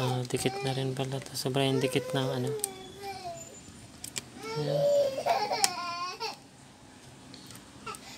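A plastic pry tool scrapes and clicks along the edge of a phone.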